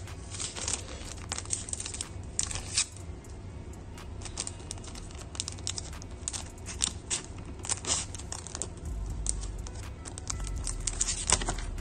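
Plastic card sleeves rustle and crinkle between fingers.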